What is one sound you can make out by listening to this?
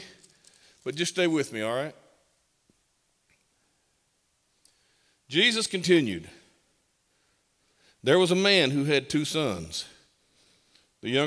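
An elderly man reads aloud slowly and expressively into a microphone, with pauses between phrases.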